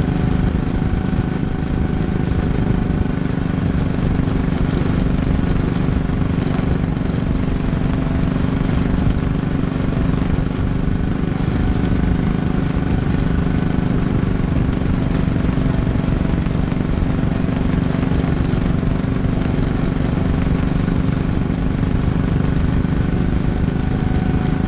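A race car engine roars loudly and steadily up close.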